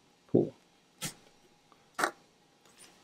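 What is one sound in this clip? Metal tweezers click softly against a hard surface.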